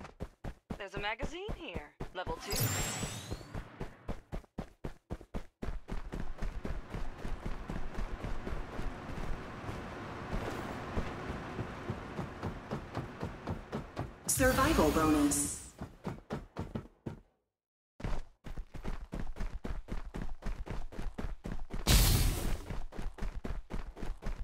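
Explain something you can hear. Quick footsteps thud steadily on the ground.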